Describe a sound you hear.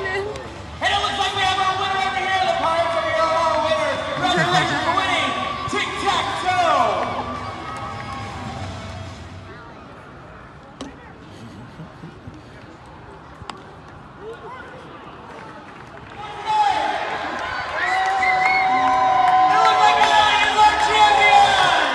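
A stadium crowd murmurs and cheers outdoors.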